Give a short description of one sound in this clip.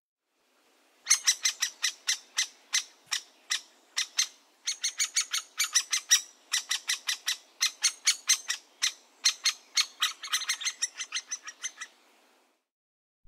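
Young woodpeckers call rapidly and shrilly from a tree hole.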